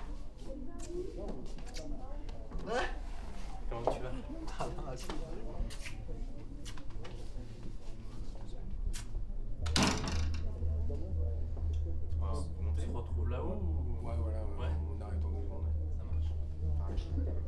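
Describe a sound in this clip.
Young men talk and joke with each other nearby.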